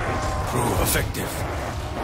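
A fiery explosion bursts nearby.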